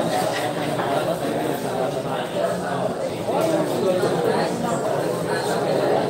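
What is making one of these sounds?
Pool balls clack together as they are racked.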